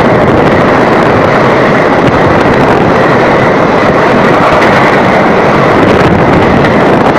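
A passenger train rushes past close by with a loud, steady roar.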